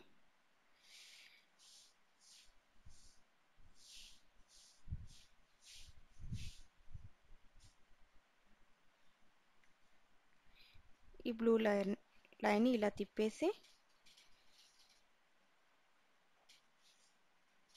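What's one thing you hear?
Plastic cane strands rustle and scrape as they are woven by hand.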